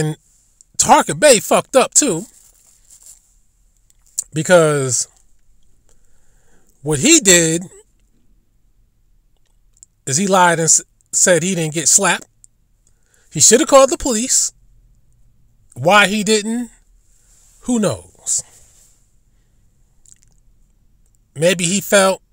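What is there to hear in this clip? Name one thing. A man speaks in short bursts with pauses, close to a microphone.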